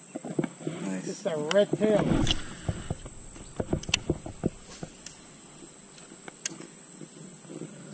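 A fishing reel clicks as its line is wound in.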